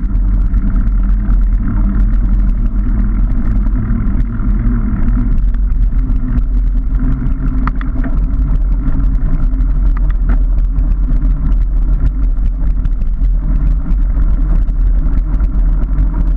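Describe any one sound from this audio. Bicycle tyres rattle over a rough path.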